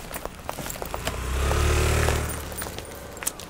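A motorbike passes close by and fades.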